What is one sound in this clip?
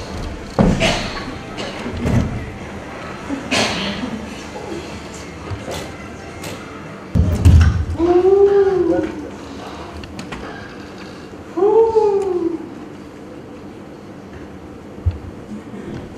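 Thumps and knocks sound on a wooden stage floor as a heavy case is moved.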